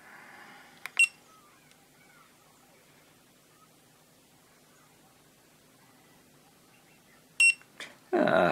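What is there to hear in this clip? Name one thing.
A small electronic tester beeps briefly.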